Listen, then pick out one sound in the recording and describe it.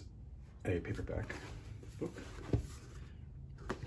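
A paperback book is picked up off a table with a soft rustle.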